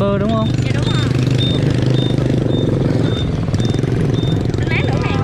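Other motorbikes ride past on a busy street.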